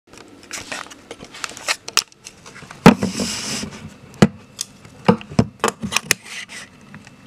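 Hands bump and rub against a microphone close by, with sharp knocks and rustles.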